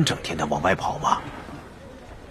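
A middle-aged man speaks calmly and gruffly.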